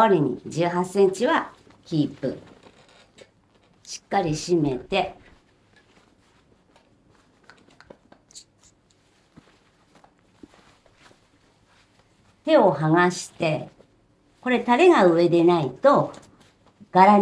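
A woman speaks calmly and clearly close to a microphone, in short bursts.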